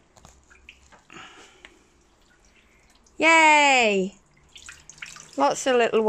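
Water splashes and drips as a net is lifted out of a pond.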